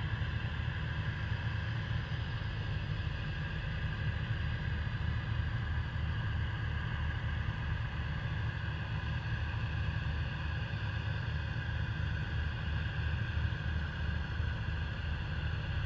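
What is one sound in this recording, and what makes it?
Gas hisses steadily from a rocket's vent outdoors.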